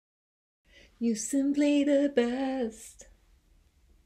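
A young woman sings loudly and powerfully close by.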